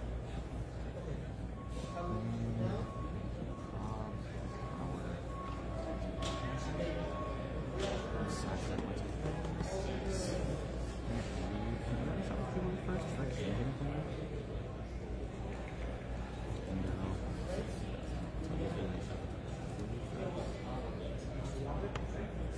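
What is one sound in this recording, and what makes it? Small playing pieces tap and click on a board.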